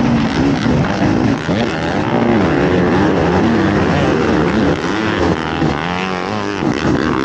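A dirt bike engine revs loudly up and down close by.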